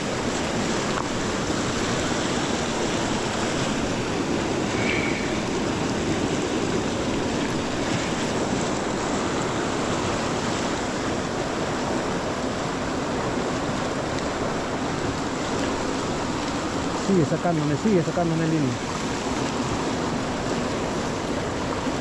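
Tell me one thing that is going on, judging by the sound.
A river rushes steadily over rocks close by.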